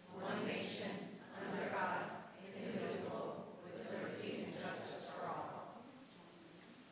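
A group of men and women recite together in unison in a large room.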